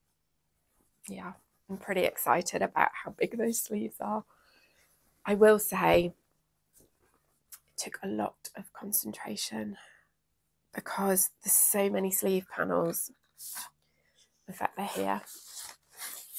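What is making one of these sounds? A young woman talks calmly and clearly into a close microphone.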